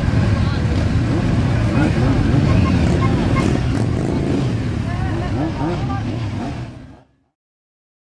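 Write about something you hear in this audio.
A crowd of men and women chatter loudly outdoors.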